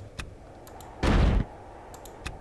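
A building tool fires with a short, loud whoosh.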